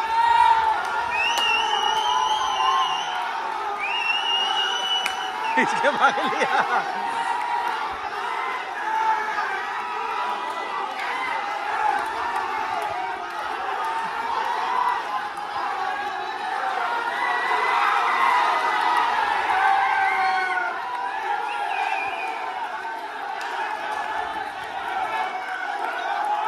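A large crowd of young men chants and shouts together outdoors.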